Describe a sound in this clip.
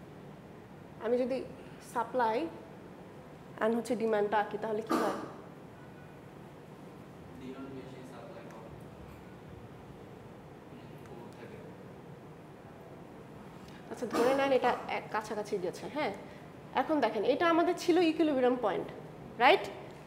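A young woman speaks calmly, explaining.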